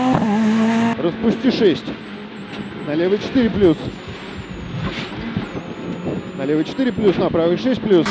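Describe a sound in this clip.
A rally car engine drones and revs from inside the car on a rough road.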